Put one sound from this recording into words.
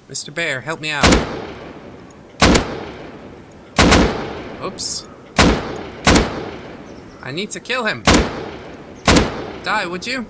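A rifle fires loud shots that echo and fade.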